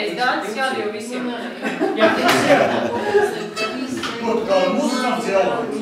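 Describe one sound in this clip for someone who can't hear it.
A fiddle plays along with the accordions.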